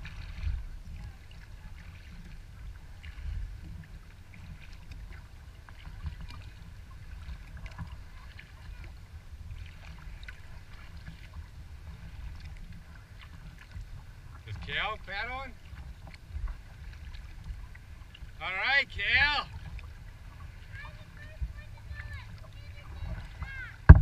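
Water laps gently against the hull of a small boat.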